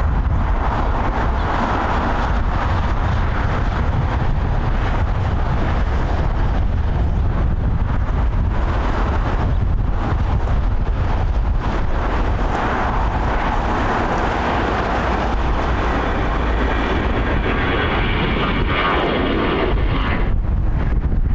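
A jet airliner's engines whine and rumble steadily as it taxis.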